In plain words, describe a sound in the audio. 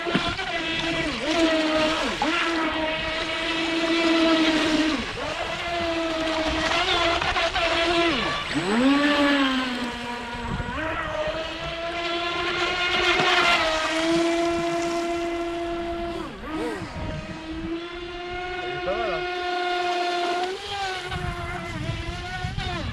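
A small model boat motor whines at high pitch, revving up and down as it races past.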